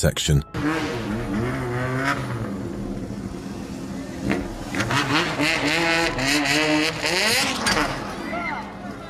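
Motorcycle engines rev loudly and roar nearby.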